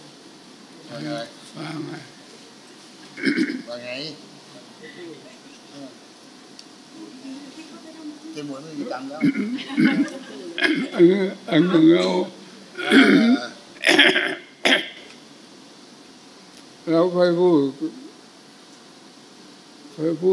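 An elderly man speaks slowly and haltingly into a microphone, with long pauses.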